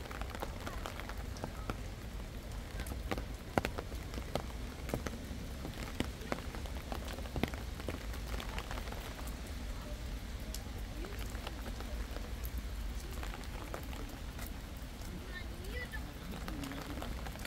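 Rain falls steadily, with drops pattering and tapping on a canopy close by.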